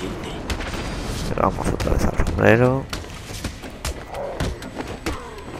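Blows land with sharp, rapid thuds in a fight.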